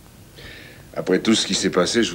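A man speaks warmly, close by.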